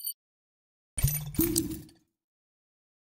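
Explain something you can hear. A short game pop and rising tone sound.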